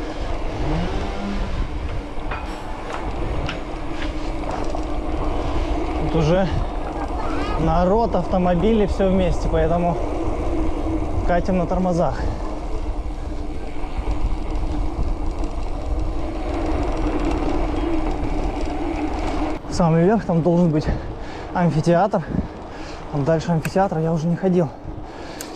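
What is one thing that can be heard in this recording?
Bicycle tyres rumble and rattle over cobblestones.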